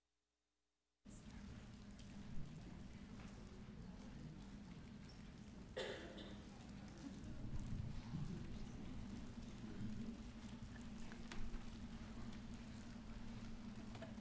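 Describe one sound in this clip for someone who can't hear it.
A crowd of men and women chatter quietly in a large, echoing hall.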